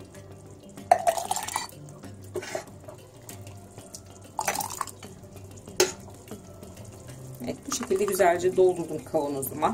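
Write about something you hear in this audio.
Thick sauce pours and splashes into a jar.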